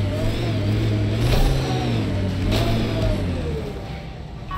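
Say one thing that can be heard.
A vehicle engine hums and revs as it drives over rough ground.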